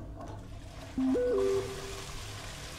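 A phone message alert chimes.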